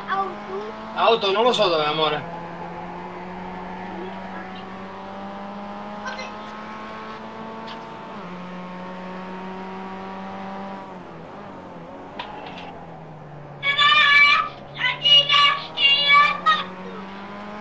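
Tyres squeal as a race car skids through turns.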